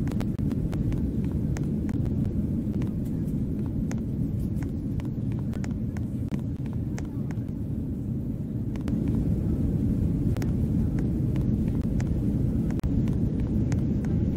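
A plane's engines drone steadily in the cabin.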